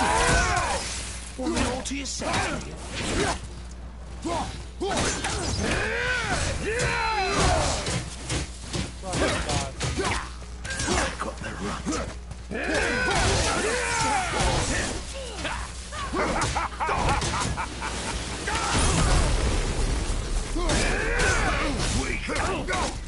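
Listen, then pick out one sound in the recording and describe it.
Heavy blows thud and clash in a fight.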